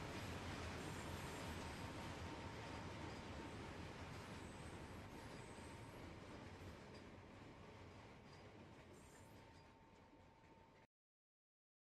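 A train rumbles along the tracks and fades into the distance.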